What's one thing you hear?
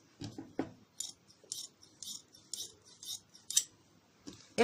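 Scissors snip through cloth several times.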